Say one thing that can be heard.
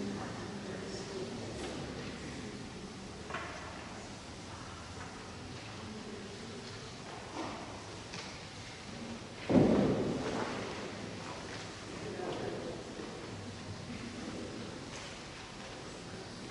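A man speaks calmly and at a distance in a large, echoing hall.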